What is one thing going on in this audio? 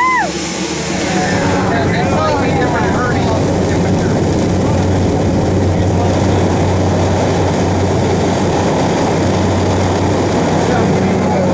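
Wind rushes loudly past an open aircraft door.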